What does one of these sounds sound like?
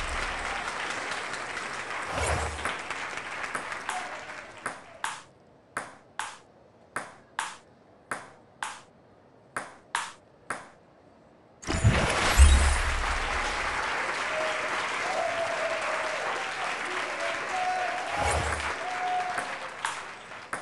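A crowd cheers and applauds in a large hall.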